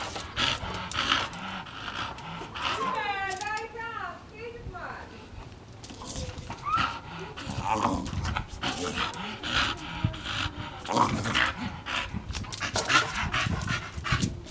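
A dog growls and snarls close by.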